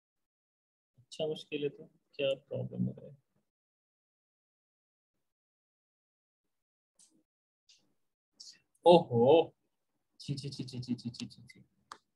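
A young man speaks calmly into a close microphone, in short bursts with pauses.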